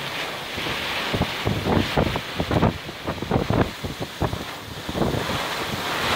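Strong wind gusts roar loudly against the microphone.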